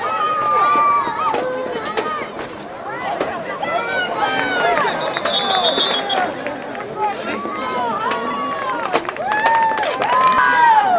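A crowd shouts and cheers loudly nearby, outdoors.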